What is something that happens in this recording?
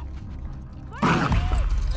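A sudden loud scuffle breaks out close by.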